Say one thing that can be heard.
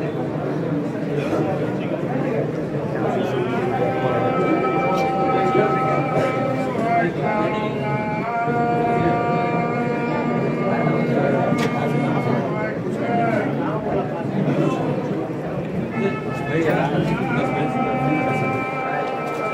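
A crowd of men murmurs and talks close by.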